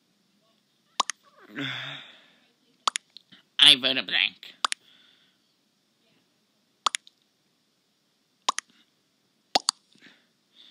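Short electronic pops sound as chat messages arrive in a game.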